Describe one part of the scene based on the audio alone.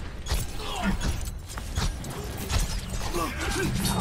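Laser beams hum and crackle in rapid bursts.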